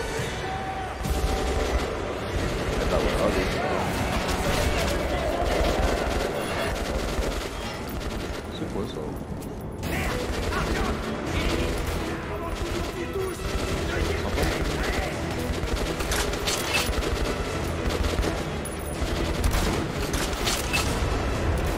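Gunfire crackles in a game.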